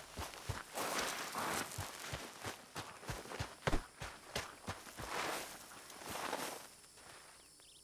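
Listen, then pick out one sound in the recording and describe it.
Dry bushes rustle as someone pushes through them.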